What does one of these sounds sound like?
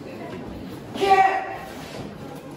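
A young man gives a sharp, loud karate shout.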